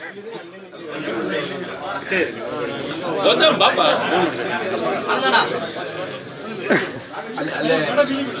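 A crowd of men chatter together close by.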